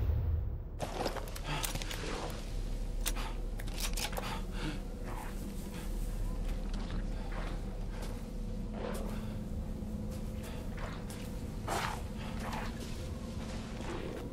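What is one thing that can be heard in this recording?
Footsteps crunch on snow and creak on wooden boards.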